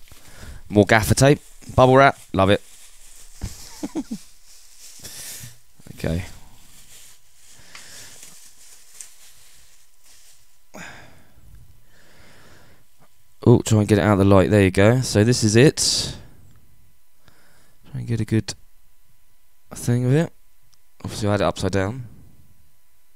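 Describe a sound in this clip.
A man talks close to the microphone with animation.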